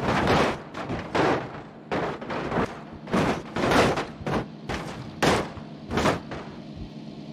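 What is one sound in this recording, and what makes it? A car crashes and tumbles over with loud metal bangs.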